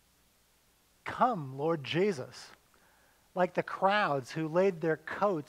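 An older man speaks calmly through a microphone in a large room.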